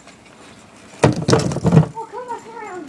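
A scooter clatters loudly onto hard ground.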